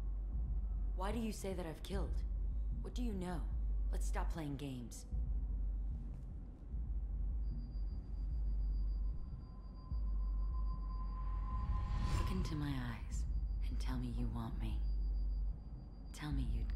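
A woman speaks slowly in a low, sultry voice.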